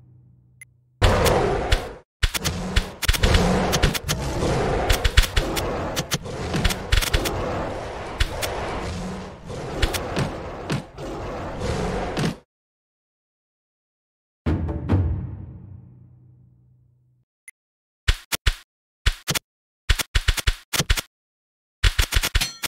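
Video-game gorillas grunt and roar as they fight.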